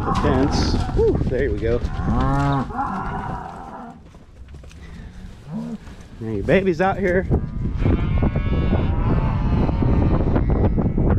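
Cattle hooves thud on dry dirt.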